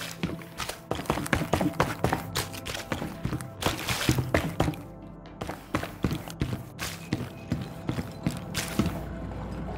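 Footsteps thud quickly on a hard floor.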